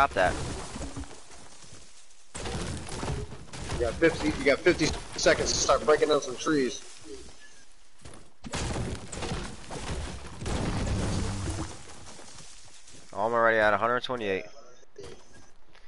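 A pickaxe chops repeatedly into a tree with dull thuds.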